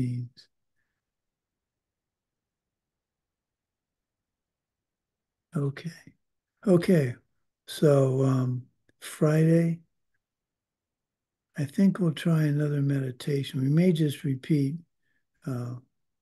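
An older man speaks calmly through an online call.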